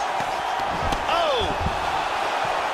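A kick lands on a body with a heavy thud.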